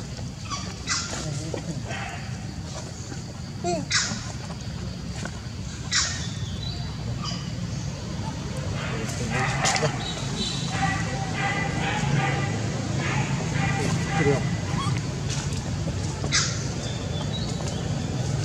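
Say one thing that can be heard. A baby monkey suckles with soft smacking sounds.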